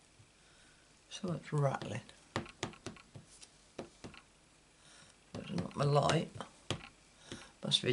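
A small ink pad taps lightly against a rubber stamp, again and again.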